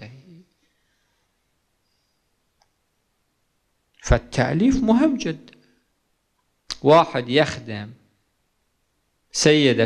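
A man speaks slowly and solemnly into a microphone, with long pauses.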